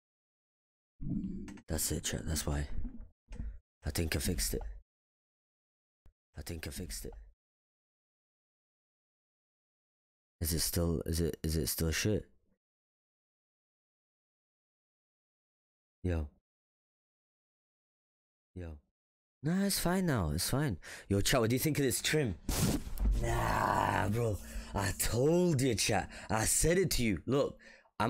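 A young man speaks casually into a close microphone, in bursts with pauses.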